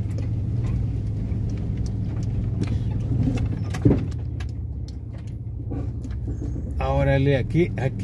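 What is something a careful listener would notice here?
A car engine hums steadily as the car rolls slowly.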